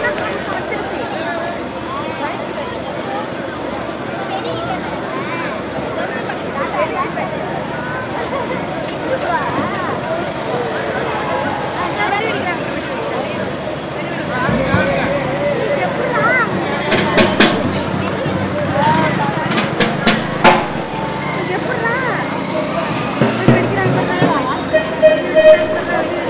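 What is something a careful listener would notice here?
A crowd of people chatters and shouts outdoors.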